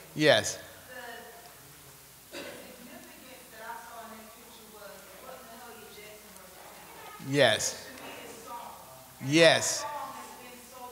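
Children call out loudly in short bursts.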